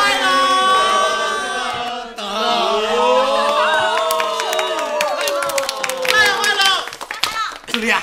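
A group of men and women sing together cheerfully.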